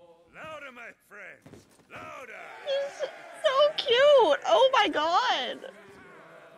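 Men shout and cheer loudly.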